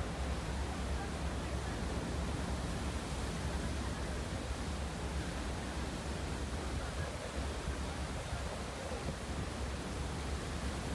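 A boat's wake churns and rushes behind it.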